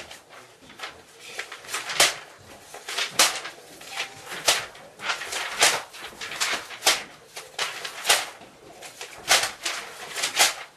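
Sheets of paper rustle and flap as they are tossed into the air.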